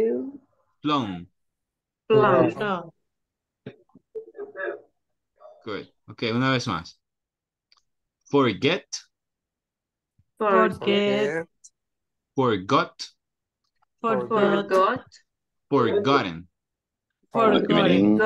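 A man speaks in short phrases with pauses over an online call.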